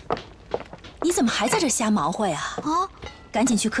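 A young woman speaks in an upset, startled voice close by.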